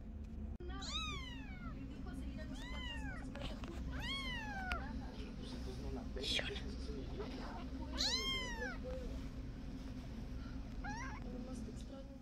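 A kitten meows in high, bending cries, several times.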